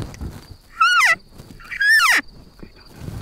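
An elk bugles loudly with a high, rising whistle.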